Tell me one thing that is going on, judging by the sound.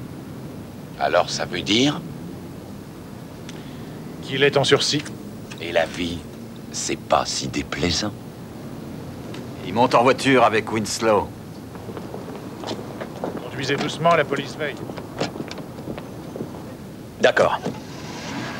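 Men talk in low, even voices.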